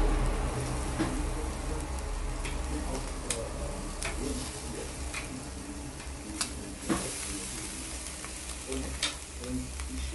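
Metal tongs click against a grill rack.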